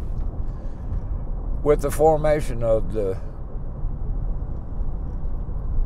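A car engine hums steadily with road noise inside the car.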